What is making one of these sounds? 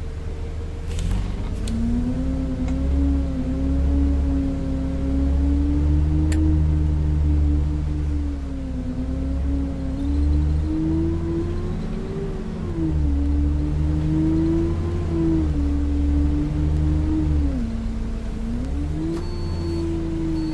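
A bus engine revs up and pulls away, rising and falling in pitch as the bus drives.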